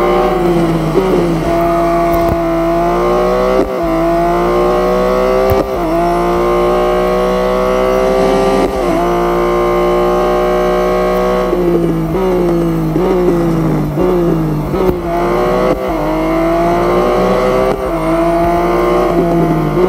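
A racing car engine roars at high speed, rising in pitch through each gear and dropping at each gear change.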